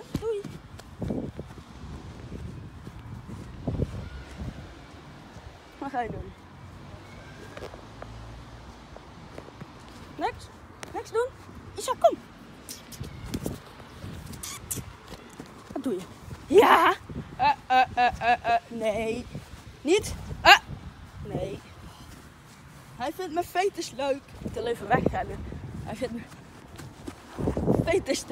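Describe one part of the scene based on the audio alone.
Footsteps swish through short grass outdoors.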